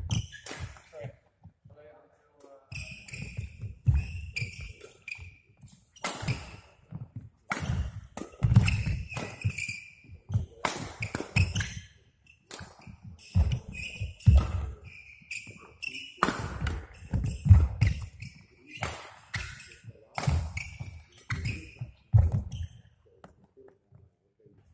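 A badminton racket strikes a shuttlecock in a large hall.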